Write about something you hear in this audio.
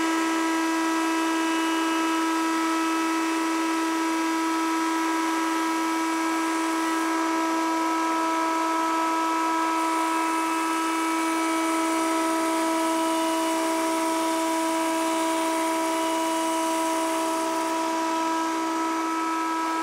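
A router spindle spins with a steady high whine.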